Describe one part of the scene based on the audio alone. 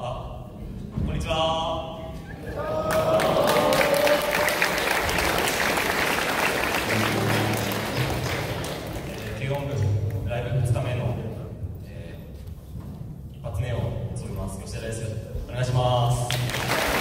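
A band plays electric guitars loudly in an echoing hall.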